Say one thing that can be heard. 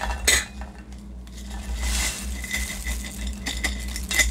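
Frozen vegetables rattle and clatter into a metal pan.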